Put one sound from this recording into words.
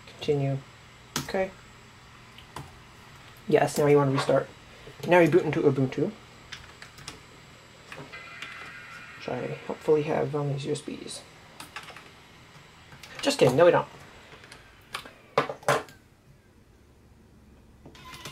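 Keys click on a laptop keyboard.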